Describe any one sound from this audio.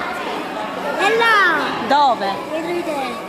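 A child shouts in a high voice.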